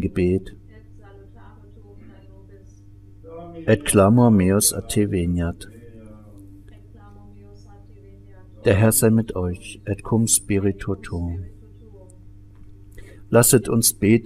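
An elderly man chants prayers in bursts, with quiet pauses between them.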